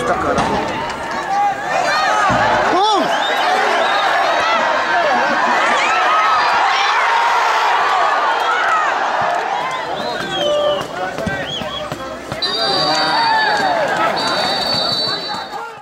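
A large crowd cheers and chants loudly outdoors.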